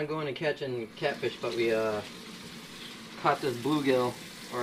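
Tap water runs into a metal sink.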